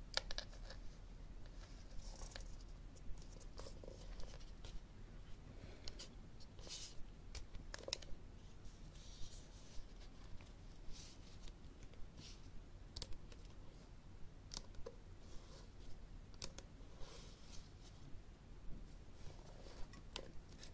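Fingernails tap and scratch on a book cover, close up.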